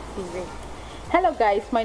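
A young woman speaks brightly, close by.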